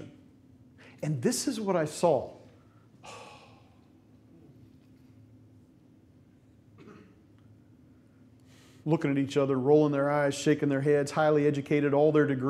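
A middle-aged man speaks with animation through a microphone in a large room.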